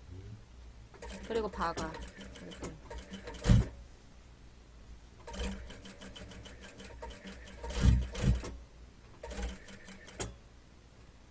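A sewing machine runs in short bursts.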